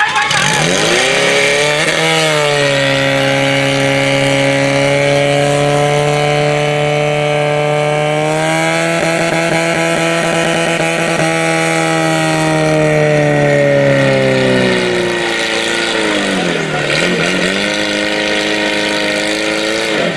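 A pump engine roars loudly and steadily, then revs down.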